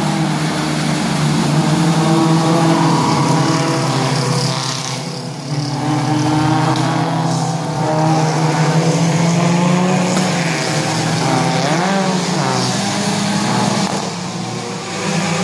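Racing car engines roar steadily as cars speed past.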